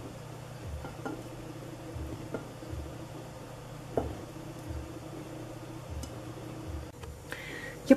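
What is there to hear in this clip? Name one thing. A whisk stirs thick batter with soft scraping and tapping.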